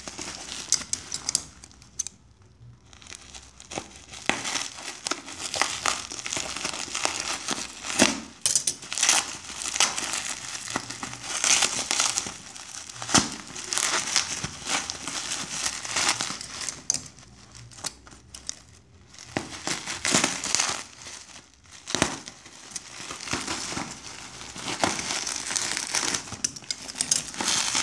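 Bubble wrap crinkles and rustles under a hand, up close.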